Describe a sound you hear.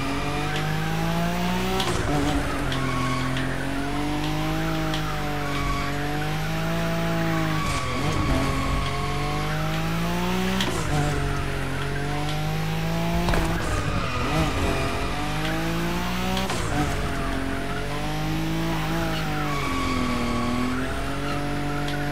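A car engine revs high and drops again and again.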